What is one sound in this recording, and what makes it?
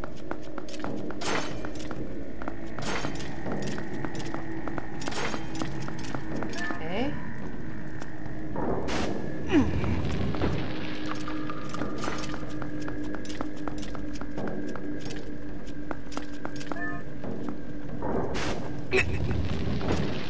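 Quick footsteps patter on a hard floor.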